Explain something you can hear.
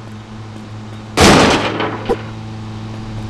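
A motorbike crashes to the ground with a loud thud.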